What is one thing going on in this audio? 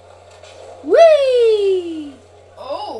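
A television set bursts with a loud, falling whine.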